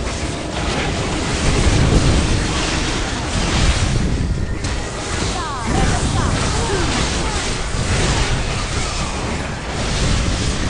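Game spell effects crackle and boom in a fast battle.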